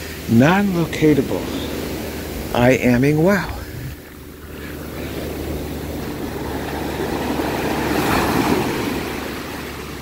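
Gentle waves wash up onto a sandy shore and hiss as they recede.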